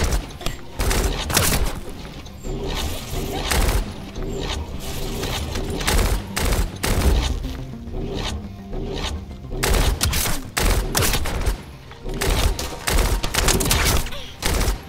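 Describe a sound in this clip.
Electric energy blasts crackle and boom in quick bursts.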